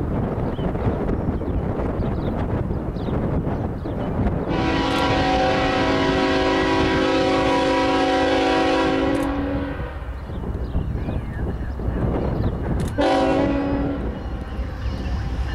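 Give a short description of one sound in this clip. A diesel locomotive rumbles as it approaches.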